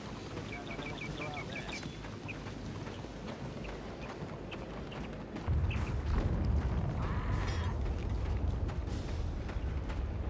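Footsteps patter on a dirt path.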